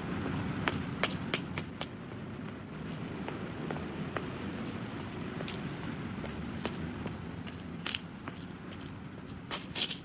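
Footsteps tap briskly on pavement.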